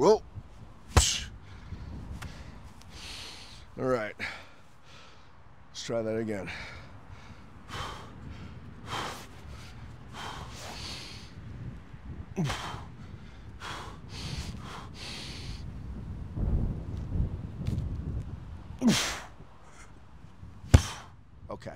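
A heavy ball thuds onto concrete.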